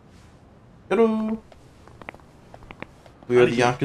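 Shoes tap on pavement as men walk.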